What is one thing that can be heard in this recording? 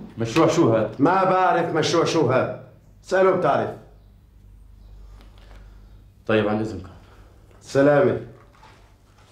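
A man speaks calmly and nearby.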